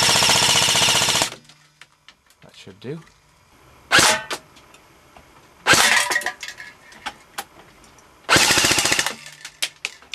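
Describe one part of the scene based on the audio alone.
An airsoft rifle fires rapid bursts close by.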